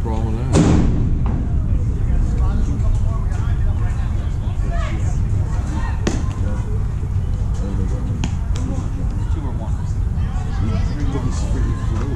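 Young players call out across an open field.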